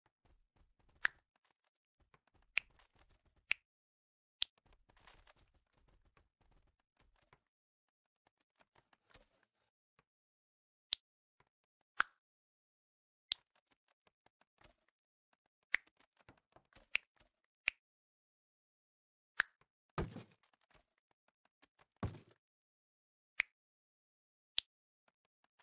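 Short, sharp game interface clicks sound now and then.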